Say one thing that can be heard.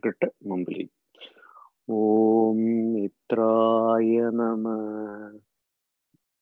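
A man speaks and chants calmly through an online call.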